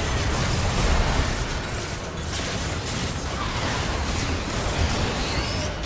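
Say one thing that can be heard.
Spell effects crackle and burst in a fast game battle.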